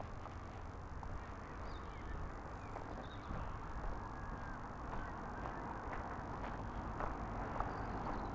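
A vehicle drives along a road with a steady low rumble.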